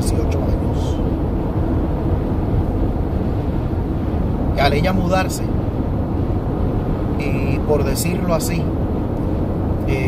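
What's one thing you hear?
A car's engine and road noise rumble low and steady.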